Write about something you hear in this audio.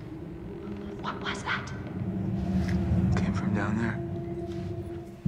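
A young woman asks something in a frightened, hushed voice.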